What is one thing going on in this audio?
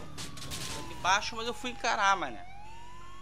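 A car crashes into something with a loud bang.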